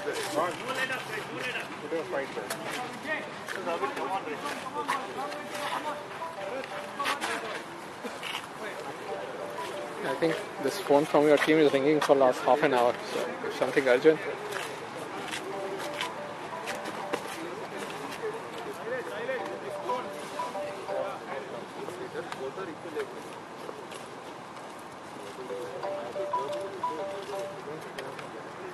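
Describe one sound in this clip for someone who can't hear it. Men talk and call out across an open field, heard from a distance outdoors.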